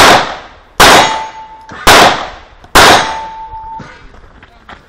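A steel target rings briefly when hit.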